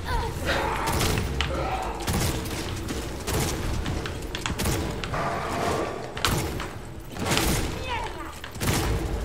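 Gunshots fire in quick bursts.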